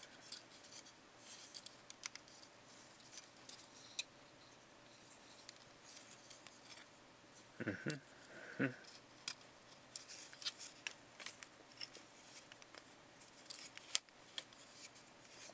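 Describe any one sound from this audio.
Plastic parts of a toy click and rattle as hands handle them close by.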